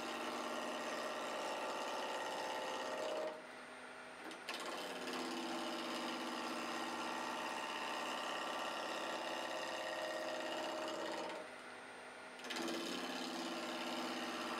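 A wood lathe hums as it spins.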